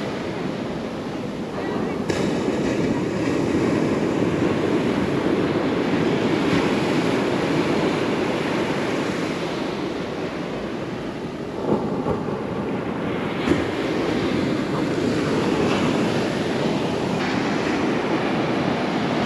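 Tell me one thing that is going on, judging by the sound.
Foamy water rushes and hisses up the sand.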